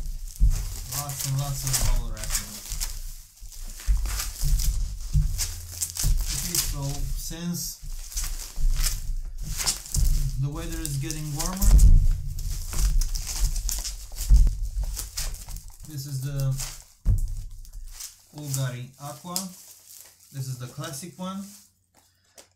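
Bubble wrap crinkles and rustles as hands unwrap it.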